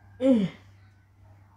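A young woman whines close by with a falling pitch.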